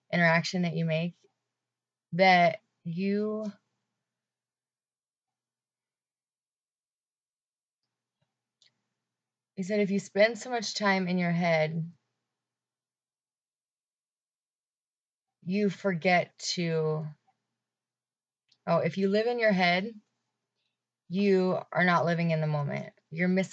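A young woman talks calmly and close to a microphone, with long pauses.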